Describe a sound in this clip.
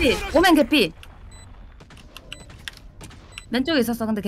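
Rapid gunshots crack from a video game.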